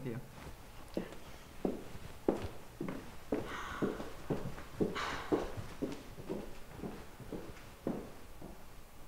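Footsteps tap.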